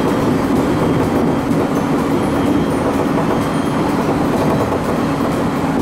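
A diesel engine drones steadily as a train moves.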